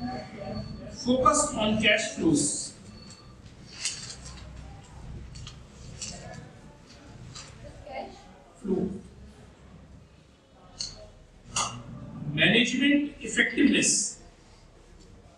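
A middle-aged man speaks calmly and clearly in a room with a slight echo.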